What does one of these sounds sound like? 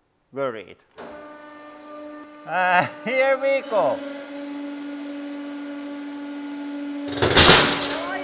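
A hydraulic press motor hums steadily.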